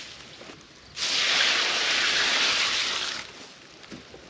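Water pours from a bucket and splashes onto dry straw.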